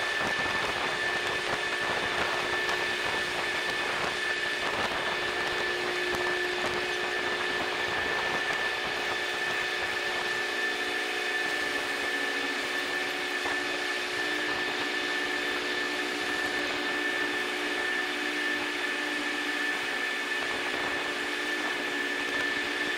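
A ship's engine hums steadily.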